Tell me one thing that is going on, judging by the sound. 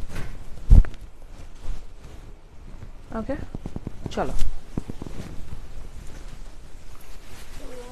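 Silk fabric rustles as it is handled.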